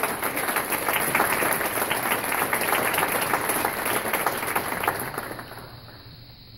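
An orchestra plays loudly in a large hall, then falls silent.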